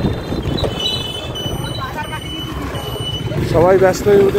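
A vehicle horn beeps several times.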